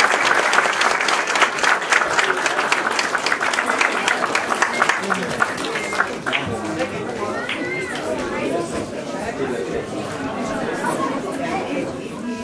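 Dancers' feet shuffle and stamp on the floor.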